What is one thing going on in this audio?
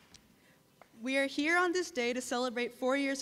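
A second young woman begins speaking brightly into a microphone.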